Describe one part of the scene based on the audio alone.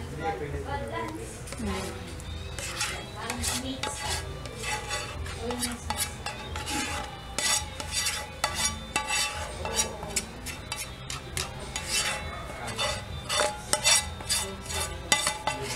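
A metal spoon scrapes and taps against a pan.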